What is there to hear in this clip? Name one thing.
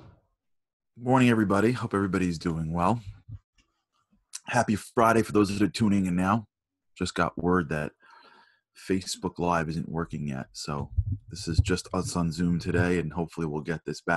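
A man speaks over an online call.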